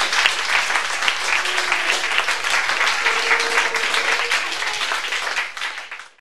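A cimbalom's strings are struck in a rapid patter.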